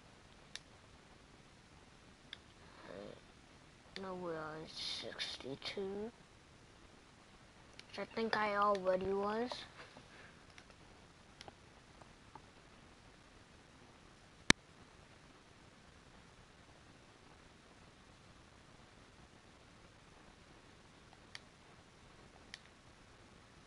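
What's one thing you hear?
Short soft clicks sound now and then as menu choices are made.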